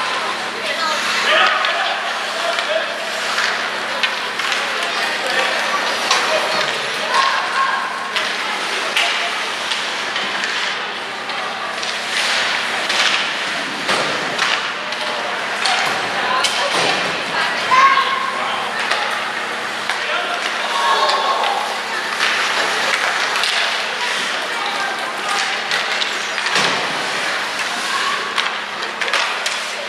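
Ice hockey skates scrape and carve across ice in a large echoing arena.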